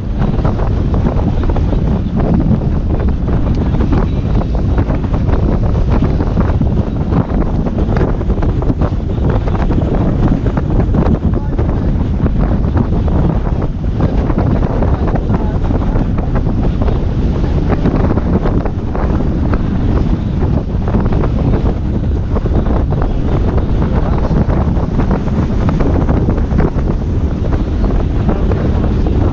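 Water rushes and splashes along a boat's hull.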